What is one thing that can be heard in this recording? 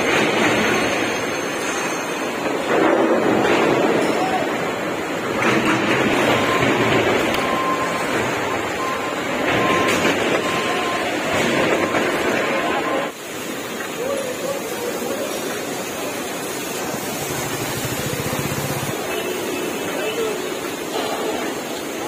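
Heavy machinery rumbles and clatters steadily in a large echoing hall.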